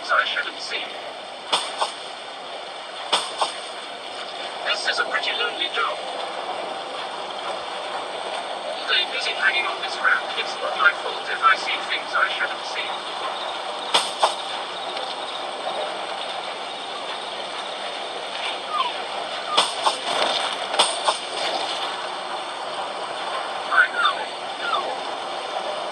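Glass windows shatter again and again with sharp crashes.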